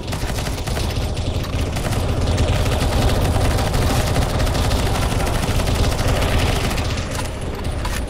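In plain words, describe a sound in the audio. An assault rifle fires rapid shots.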